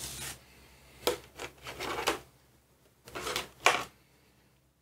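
A thin plastic sheet crackles and flexes as it is lifted.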